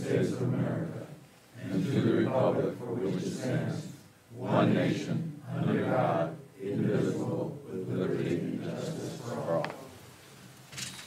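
A group of people recite together in unison, in a large room.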